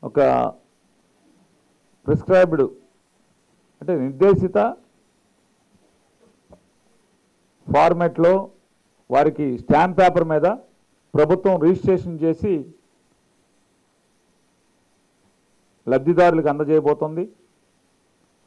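A middle-aged man speaks forcefully into a microphone, in short bursts with pauses.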